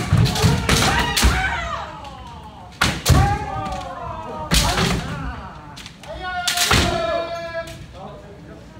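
Bamboo swords clack and strike against each other.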